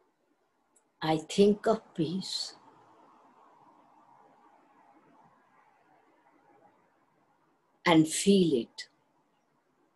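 An elderly woman speaks calmly in short phrases, heard through an online call microphone.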